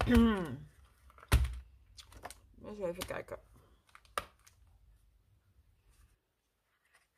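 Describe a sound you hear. Stiff card and paper rustle and tap as they are handled and opened.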